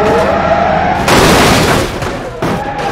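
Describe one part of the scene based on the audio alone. A heavy truck slams into a small car with a loud metal crash.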